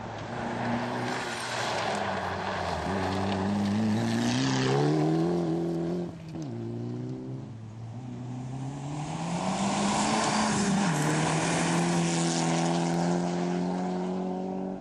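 Gravel sprays and hisses under spinning tyres.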